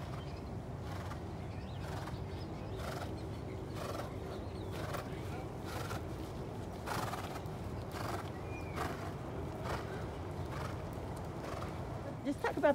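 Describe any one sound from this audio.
A horse's hooves thud on soft dirt at a walk.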